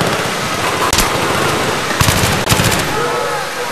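A rifle fires several sharp shots that echo in a large concrete space.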